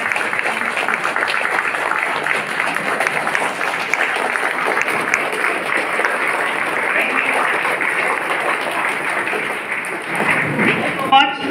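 A large crowd claps and applauds loudly in an echoing hall.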